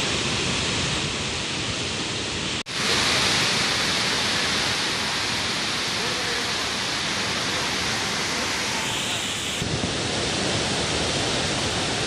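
Water gushes from dam gates and roars steadily as it crashes down.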